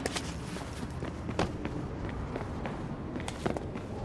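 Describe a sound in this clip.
Footsteps walk on concrete.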